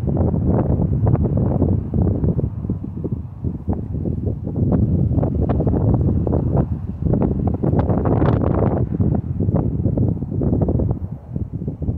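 Wind blows in strong, uneven gusts outdoors.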